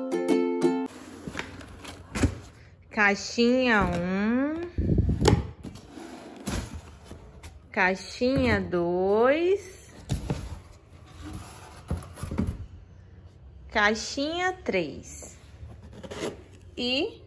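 Small packages clatter against each other.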